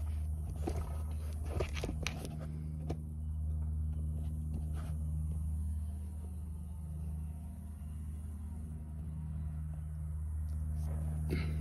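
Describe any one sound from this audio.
An engine idles with a steady low rumble close by.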